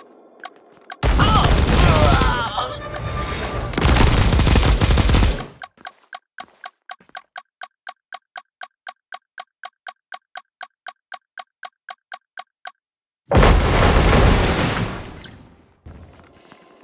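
Loud explosions boom.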